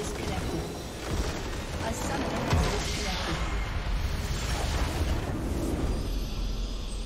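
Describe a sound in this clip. A large structure explodes with a deep rumbling blast.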